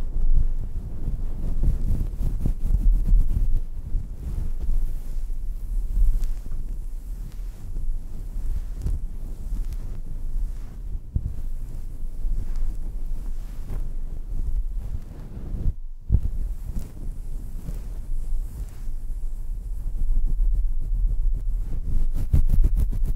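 Fingers rub and scratch a fuzzy microphone cover up close, with a soft, muffled rustling.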